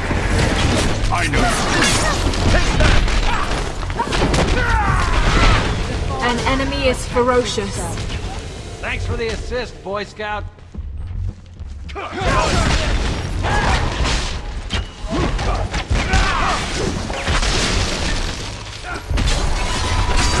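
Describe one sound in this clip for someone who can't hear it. Magic blasts and clashing hits crackle and boom in a fierce fight.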